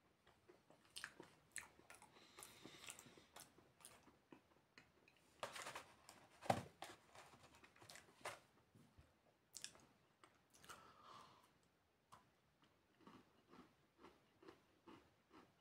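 A young man chews crunchy food close by.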